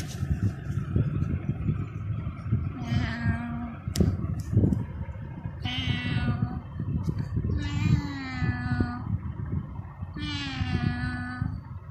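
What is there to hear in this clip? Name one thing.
A hand rustles against a kitten's fur.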